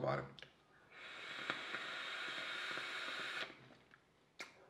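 A man draws on a vape with a soft hiss.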